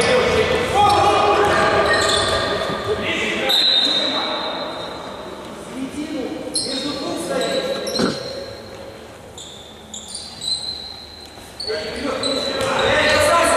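Sneakers squeak sharply on a hard court floor in an echoing hall.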